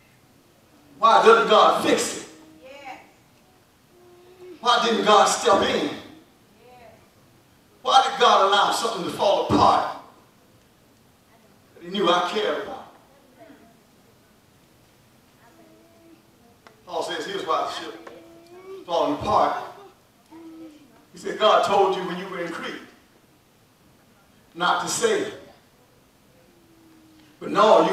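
A man preaches with animation through a microphone, pausing between short phrases.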